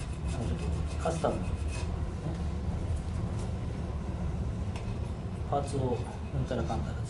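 An elderly man murmurs briefly close by.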